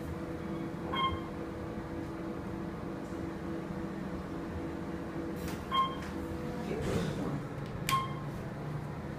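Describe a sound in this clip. An elevator chime dings a few times.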